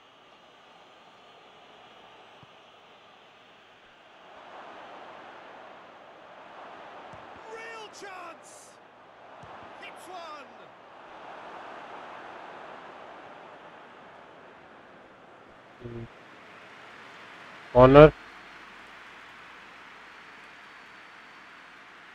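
A crowd roars and cheers in a large stadium.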